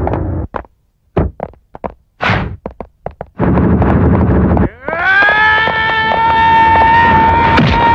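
Heavy punches land with sharp thuds in a fight.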